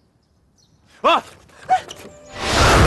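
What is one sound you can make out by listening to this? A young woman screams in alarm.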